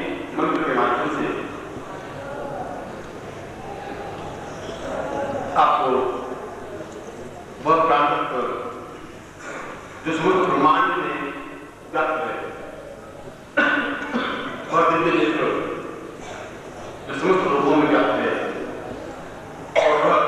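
A middle-aged man speaks with feeling into a microphone, heard through a loudspeaker in a reverberant hall.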